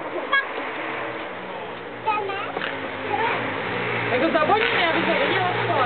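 Young children talk excitedly nearby, outdoors.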